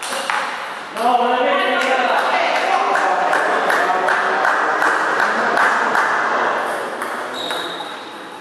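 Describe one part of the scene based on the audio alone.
Spectators cheer and shout in an echoing hall.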